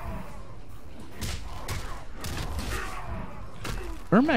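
Green magic blasts whoosh and crackle.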